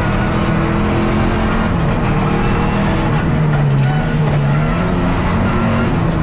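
A car engine roars loudly from inside the cabin, its pitch dipping and climbing as the driver shifts gears.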